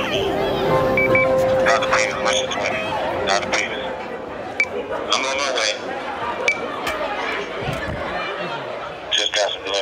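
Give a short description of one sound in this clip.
A crowd of young people chatters in an echoing hall.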